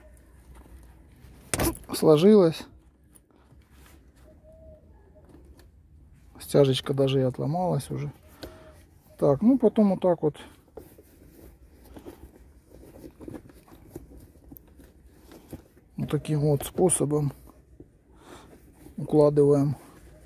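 Hands rustle and crease a leather gear-stick boot.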